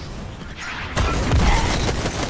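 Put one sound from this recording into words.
A fiery explosion roars.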